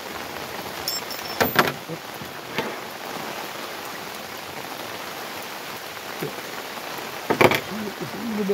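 Metal parts of a rifle click and clack as they are handled.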